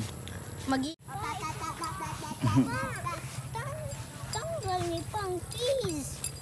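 A young boy talks with animation close by, outdoors.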